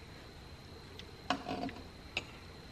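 Metal engine parts clink and knock as they are handled.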